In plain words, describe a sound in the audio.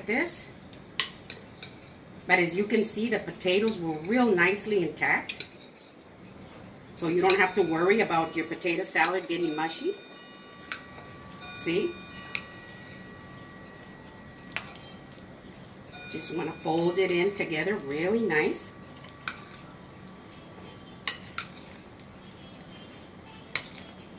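A spoon scrapes and clinks against a glass bowl.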